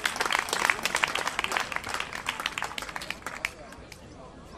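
A man strums an acoustic guitar through loudspeakers.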